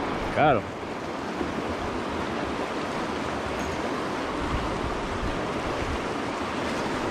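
A shallow river rushes and gurgles steadily over rocks close by, outdoors.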